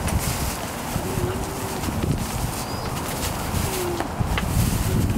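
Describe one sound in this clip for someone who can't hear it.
Puppies whimper and squeak softly.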